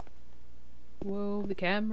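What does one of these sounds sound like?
A young woman lets out a drawn-out, sing-song cry.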